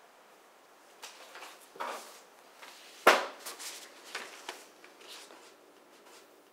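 Paper rustles and crinkles up close.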